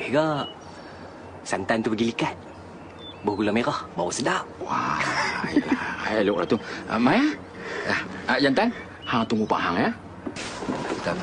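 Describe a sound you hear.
A middle-aged man talks with animation, close by.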